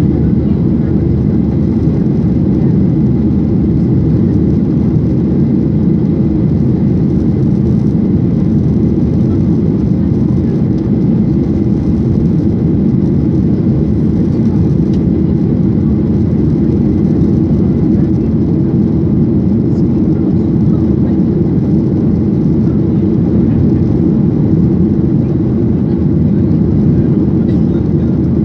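A plane's engines drone steadily with a low, even roar.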